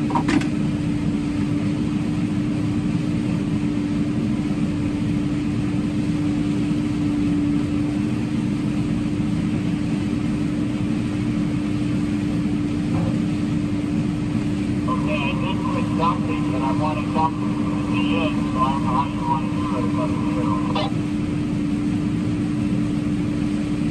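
A combine harvester engine drones steadily from inside the cab.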